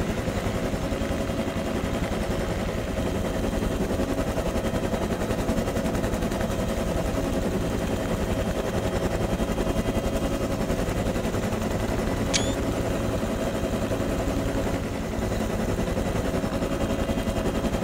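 A helicopter's engine and rotor drone loudly and steadily.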